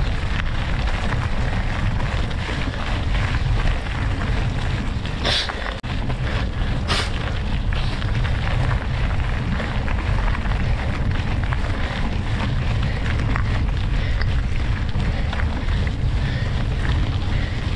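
Tyres crunch steadily over a gravel track.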